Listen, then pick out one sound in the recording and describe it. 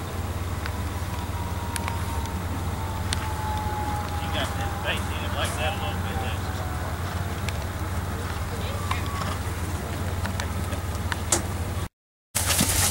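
Horses' hooves thud softly on dirt.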